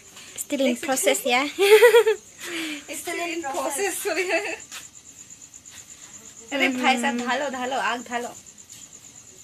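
A young woman talks and laughs playfully close by.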